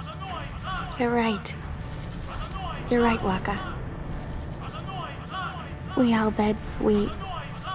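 A young woman speaks quietly and sadly, up close.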